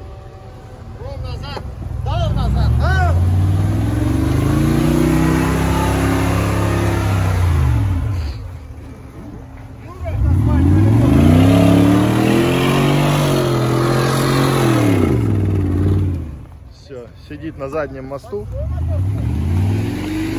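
Tyres spin and churn through thick mud.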